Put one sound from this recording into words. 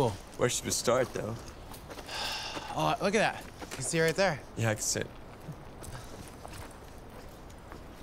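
Footsteps crunch through dry grass and twigs.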